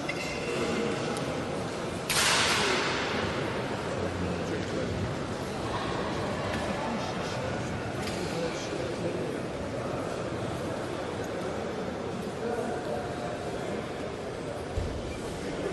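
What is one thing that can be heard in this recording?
Footsteps echo faintly across a large hall.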